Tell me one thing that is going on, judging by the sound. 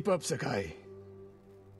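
A man speaks calmly and firmly through a loudspeaker.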